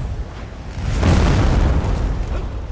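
A large blast roars.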